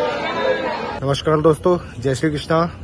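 A man speaks calmly close up.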